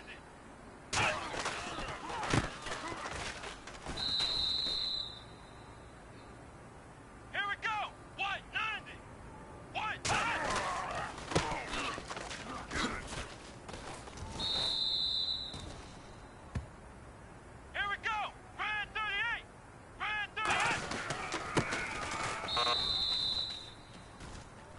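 A stadium crowd roars during a football play.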